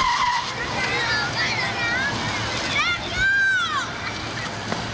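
Car tyres squeal sharply on pavement.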